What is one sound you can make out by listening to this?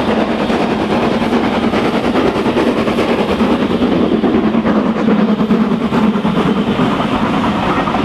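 A steam locomotive puffs and roars loudly as it climbs past.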